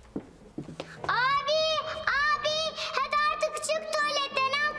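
A small girl speaks loudly with a high, sing-song voice close by.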